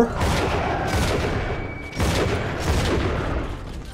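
Gunshots and impacts ring out.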